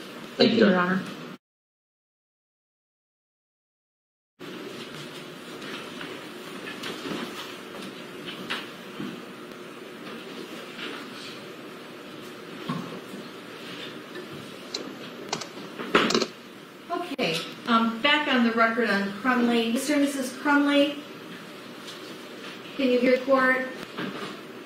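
A woman speaks calmly through a microphone in a room.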